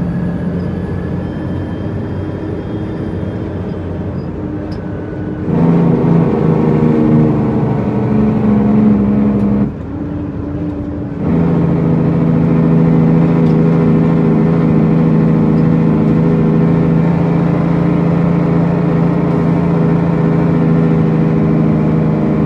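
A large truck engine rumbles steadily.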